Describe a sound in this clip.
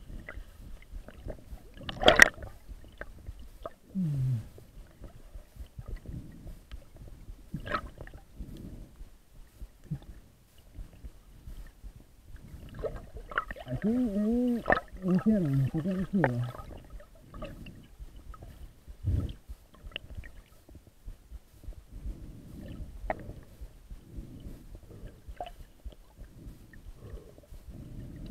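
Water sloshes and bubbles, heard muffled from under the surface.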